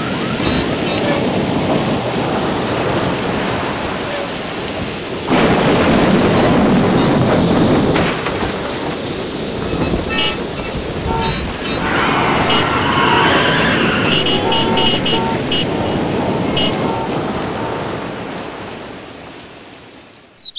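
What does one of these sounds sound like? Strong wind roars and gusts outdoors.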